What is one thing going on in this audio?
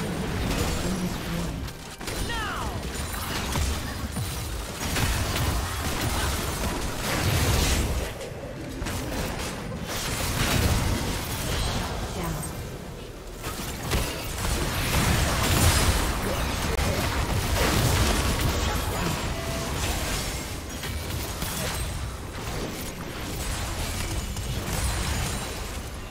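Spell blasts and magic effects crackle and boom during a game battle.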